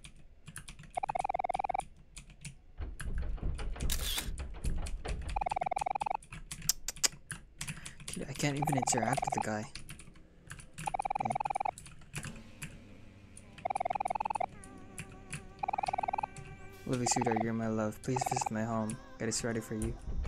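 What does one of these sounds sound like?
Quick electronic blips chatter as game dialogue text types out.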